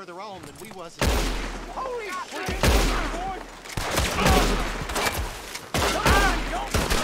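Gunshots crack loudly in rapid bursts.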